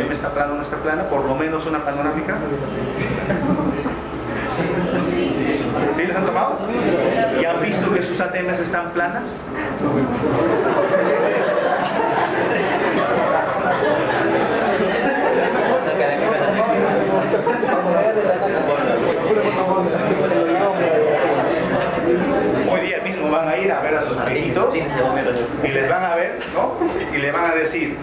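A man speaks steadily to an audience, heard from some distance.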